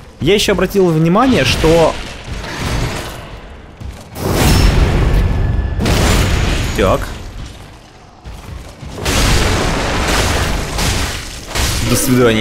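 Metal blades clash and slash in a close fight.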